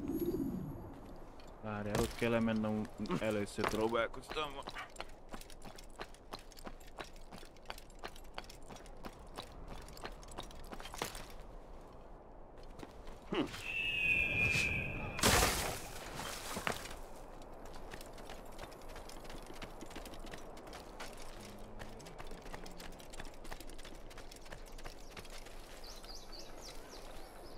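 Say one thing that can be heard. Quick footsteps patter on stone.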